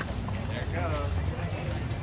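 A crowd of adults chats in the distance outdoors.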